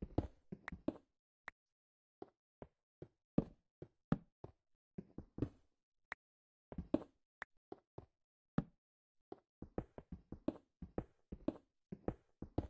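A pickaxe chips at stone in quick, repeated knocks.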